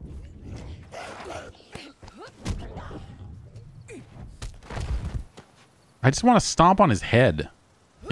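A heavy club thuds into a body.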